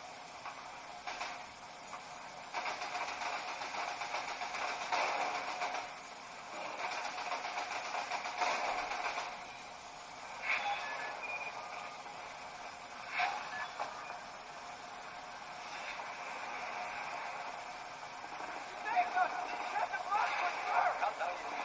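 Game gunfire and explosions play through a small speaker.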